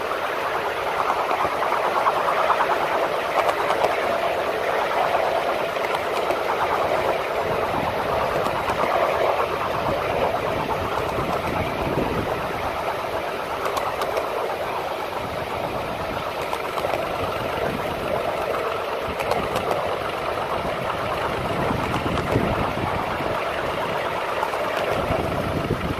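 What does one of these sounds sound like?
A small steam locomotive chuffs steadily along.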